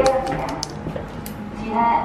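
A lift button clicks as it is pressed.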